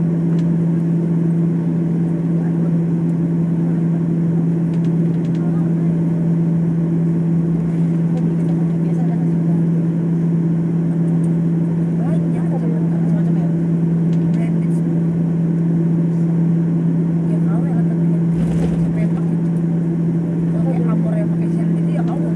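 An aircraft engine hums steadily from inside a cabin while taxiing.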